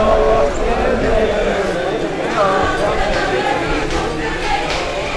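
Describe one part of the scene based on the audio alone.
A crowd of men chants and calls out loudly outdoors.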